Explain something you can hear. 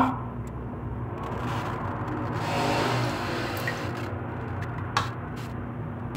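A wooden spoon stirs and scrapes inside a metal pot.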